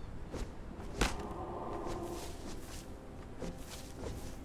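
Leafy branches rustle and snap as plants are pulled.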